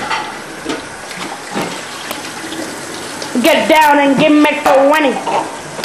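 Water runs from a tap into a sink.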